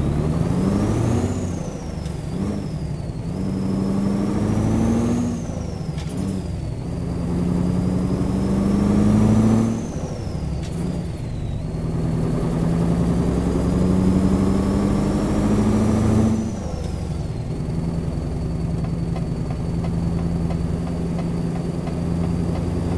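A truck's diesel engine drones and rises in pitch as it speeds up through the gears.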